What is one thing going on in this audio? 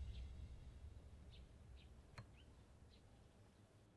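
A finger rubs lightly along a wooden frame.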